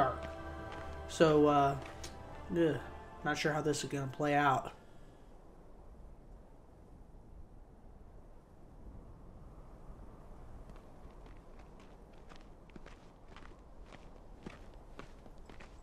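Footsteps crunch on dry, hard ground.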